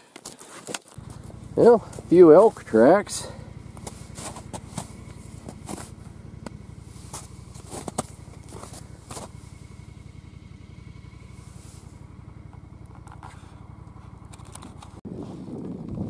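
A vehicle engine hums steadily while driving over snow.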